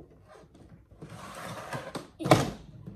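A suitcase's zip rasps as it is pulled shut.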